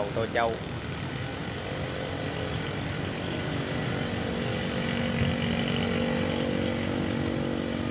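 Motorbikes hum past on a nearby road.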